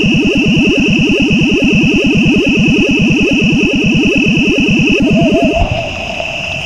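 Buzzy electronic game tones whir rapidly as a fishing line reels in.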